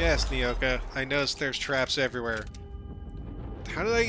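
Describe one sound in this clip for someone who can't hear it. A pistol is reloaded with metallic clicks.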